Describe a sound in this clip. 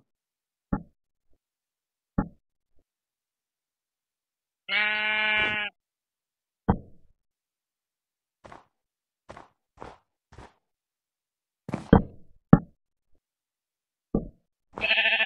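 Wooden blocks thud softly as they are placed.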